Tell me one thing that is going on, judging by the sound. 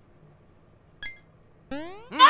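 A short electronic chime pops up once in a game.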